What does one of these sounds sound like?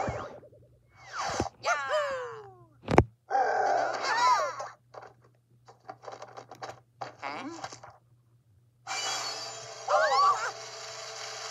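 Cheerful game music and sound effects play through a small speaker.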